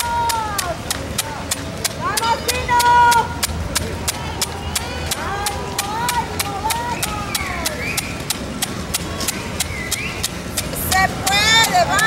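Runners' footsteps patter on the pavement.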